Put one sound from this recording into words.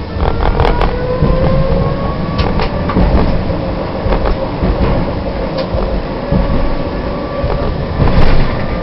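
Tram wheels clack now and then over rail joints.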